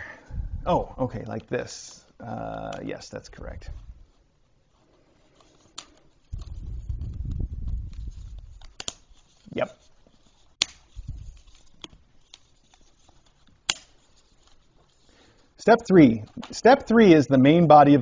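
Plastic toy parts rattle and click as a man handles them.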